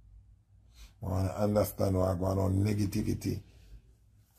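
A young man speaks calmly and close to a phone microphone.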